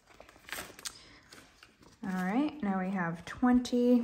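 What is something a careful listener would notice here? Paper banknotes rustle softly as they are handled.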